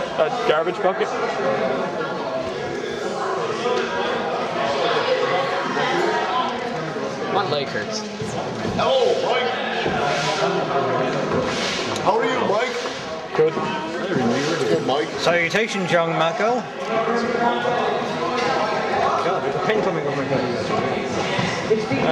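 A crowd of men chatters loudly in a busy, echoing room.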